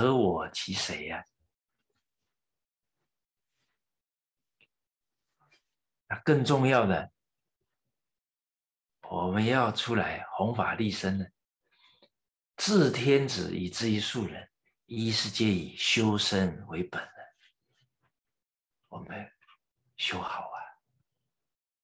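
An elderly man talks with animation, close by, in short bursts with pauses.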